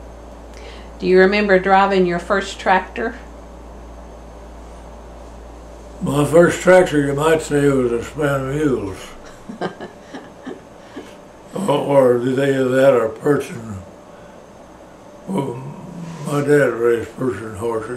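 An elderly man speaks slowly and calmly, close by, with pauses.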